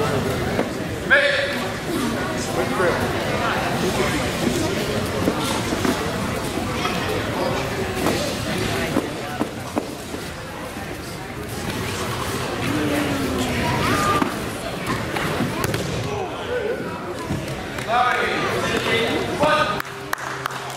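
Spectators and coaches shout and call out in a large echoing hall.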